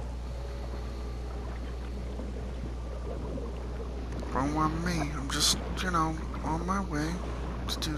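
Water rumbles low and steadily underwater.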